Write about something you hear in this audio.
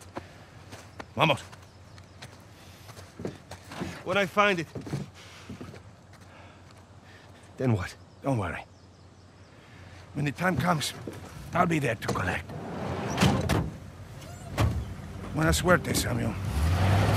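A second man answers in a low, calm voice.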